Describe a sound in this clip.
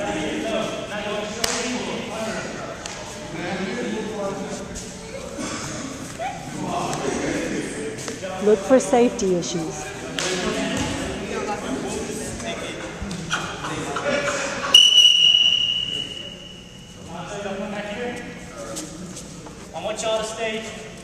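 Many young men and women talk and call out at the same time in a large echoing gym.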